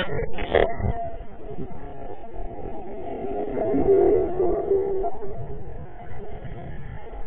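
Underwater bubbles rush and gurgle, heard muffled.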